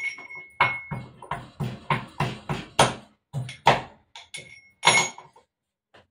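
Metal utensils clink against a pot.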